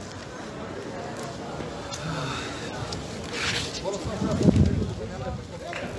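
A crowd of men and women talks and murmurs nearby outdoors.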